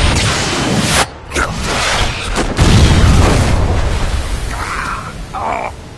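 Strong wind howls through a snowstorm.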